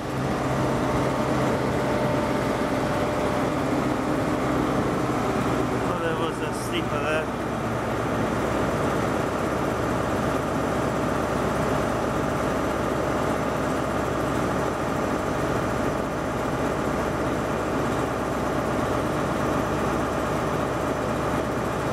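A train rumbles along the tracks as it approaches.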